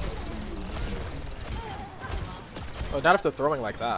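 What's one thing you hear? Video game gunfire crackles in rapid bursts.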